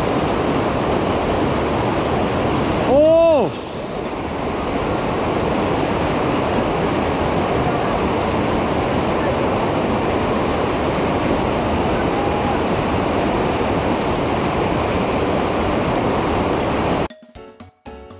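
A mountain stream rushes and splashes loudly over rocks nearby.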